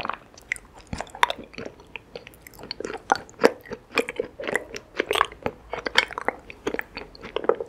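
Honeycomb crunches and squelches close up as it is chewed.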